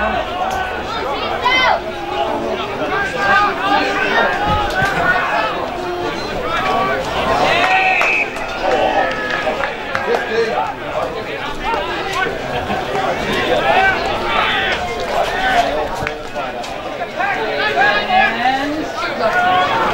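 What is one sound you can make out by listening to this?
Nearby spectators shout and cheer loudly outdoors.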